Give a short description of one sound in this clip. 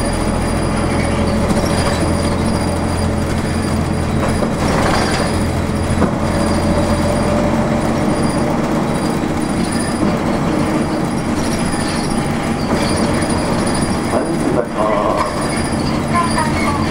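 Tyres rumble steadily on the road.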